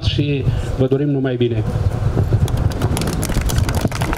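A man speaks through a microphone outdoors.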